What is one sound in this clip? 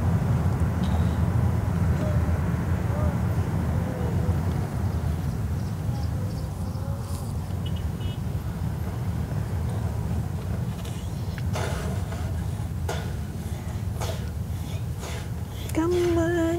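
Traffic rumbles steadily outside the car.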